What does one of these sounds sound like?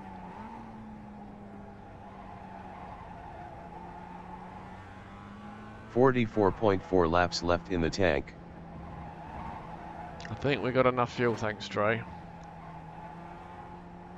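A racing car engine hums steadily.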